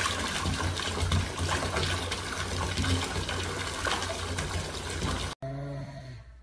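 Water runs from a tap and splashes into a bathtub.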